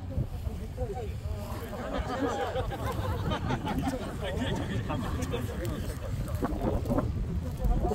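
A crowd of men and women talk over one another nearby outdoors.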